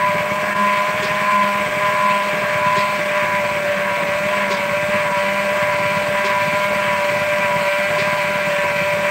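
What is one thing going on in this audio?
Beaters tap against the side of a plastic bowl.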